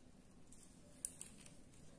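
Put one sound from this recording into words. A plastic jar lid clicks open.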